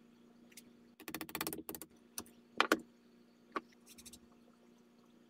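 Small metal tools clink and tap against a wooden bench.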